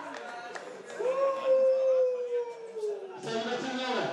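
A young man calls out a long, drawn-out cheer.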